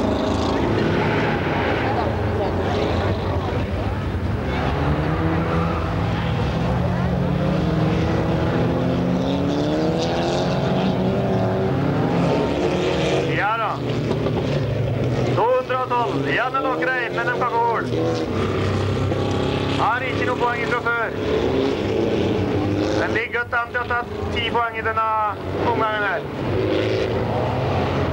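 Rally car engines roar and rev loudly nearby.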